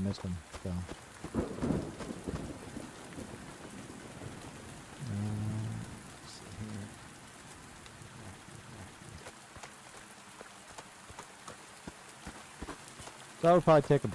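A middle-aged man talks into a close microphone in short bursts.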